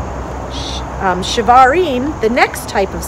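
A woman reads aloud calmly close by.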